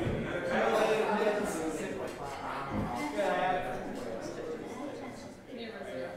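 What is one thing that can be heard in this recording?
A crowd of men and women murmurs and chatters in a large, echoing hall.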